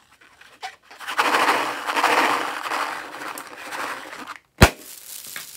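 A rubber balloon rubs and crinkles loudly.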